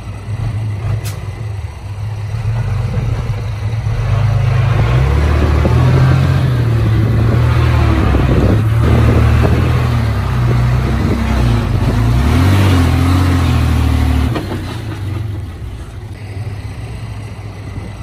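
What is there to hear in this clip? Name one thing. A heavy truck engine rumbles and revs as the truck slowly reverses.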